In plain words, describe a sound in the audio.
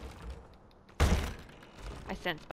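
A window latch clunks and rattles.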